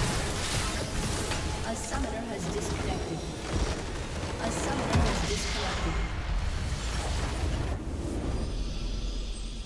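Spell effects whoosh and crackle in a game fight.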